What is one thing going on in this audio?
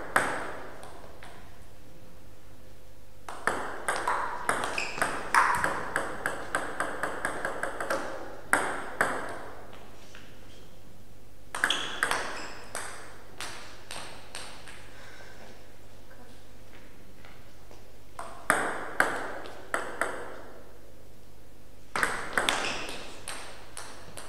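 A table tennis ball clicks rapidly back and forth off paddles and a table, echoing in a hall.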